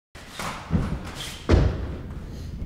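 A person's feet thud as they land on a wooden box.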